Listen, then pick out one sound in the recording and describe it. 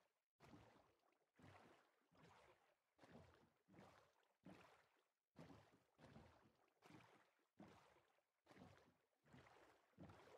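Oars splash rhythmically through water as a boat is rowed.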